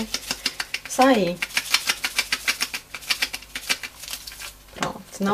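A spice shaker rattles in quick bursts.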